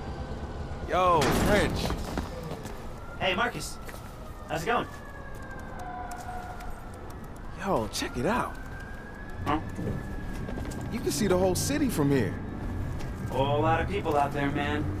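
A young man speaks casually and cheerfully, close by.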